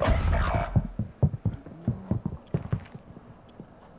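Footsteps thud on hard floors.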